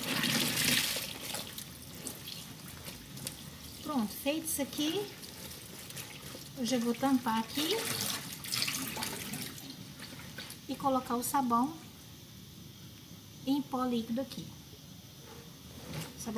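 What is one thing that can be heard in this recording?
Wet clothes rustle and slosh as they are handled.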